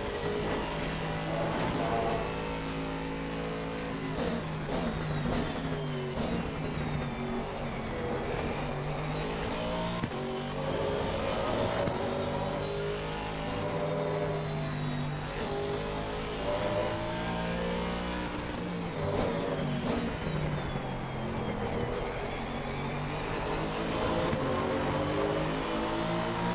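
A racing car engine roars, rising and falling in pitch as gears shift.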